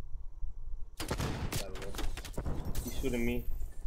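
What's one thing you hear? Rapid gunshots crack.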